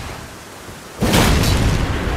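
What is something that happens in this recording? A heavy blow lands with a loud crash.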